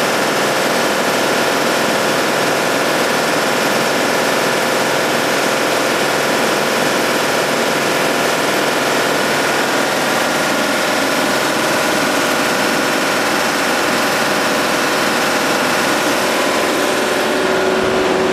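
A compressor runs with a steady loud mechanical drone.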